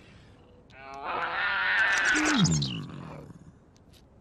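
A small cartoon creature chatters and squeaks as it scurries along.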